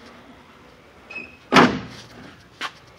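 A hard plastic panel knocks and rattles as it is handled.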